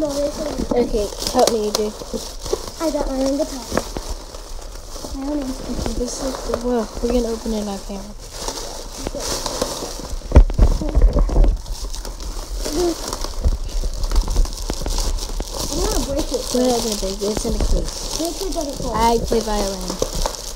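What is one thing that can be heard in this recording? Plastic bags and bubble wrap crinkle and rustle as hands handle them.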